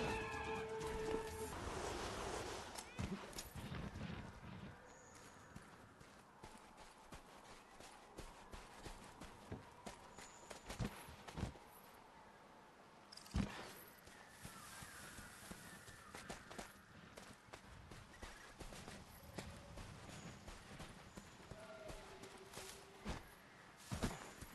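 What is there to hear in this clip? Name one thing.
Footsteps crunch on the ground as a character runs.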